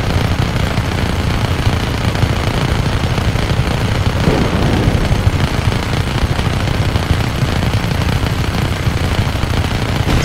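Explosions boom and crackle with fire.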